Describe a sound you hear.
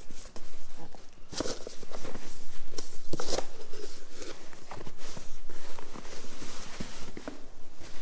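Cardboard flaps scrape and rustle.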